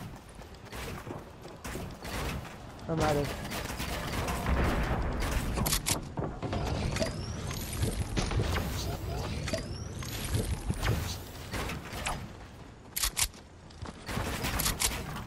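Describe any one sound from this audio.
Building pieces snap into place with quick clattering knocks in a video game.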